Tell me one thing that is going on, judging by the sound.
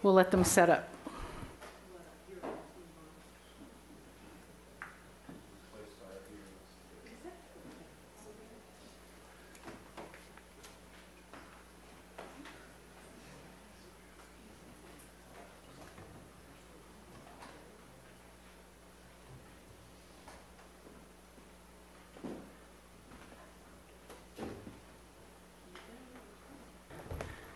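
Several people murmur quietly nearby.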